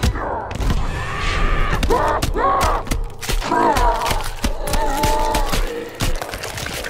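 A large creature roars and groans in pain.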